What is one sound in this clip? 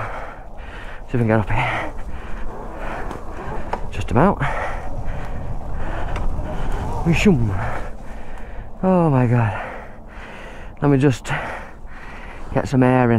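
Tyres crunch over dirt and dry leaves.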